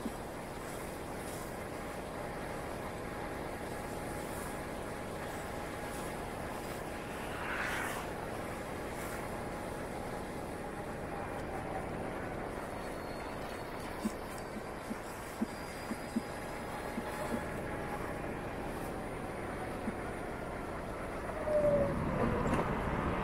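Tyres roll over a city street.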